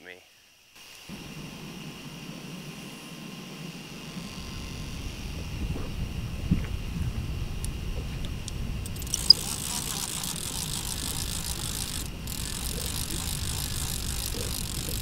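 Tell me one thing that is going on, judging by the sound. Wind rushes steadily past a moving boat.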